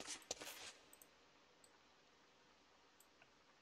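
A game interface clicks softly as items are moved.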